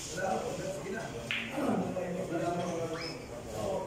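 A cue stick strikes a ball with a sharp click.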